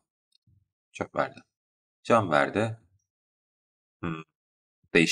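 Short menu chimes sound as items are picked.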